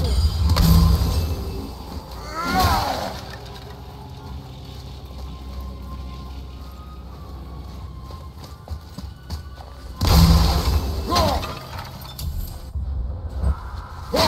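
Low wind rumbles through an echoing cave.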